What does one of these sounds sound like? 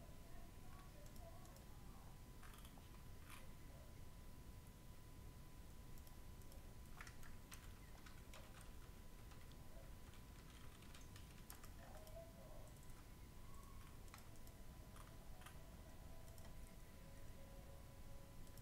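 Soft clicks sound as game pieces move.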